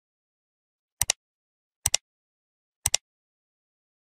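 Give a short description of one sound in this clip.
A mouse button clicks a few times.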